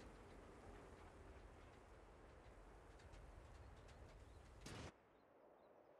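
Tank engines rumble low and steadily.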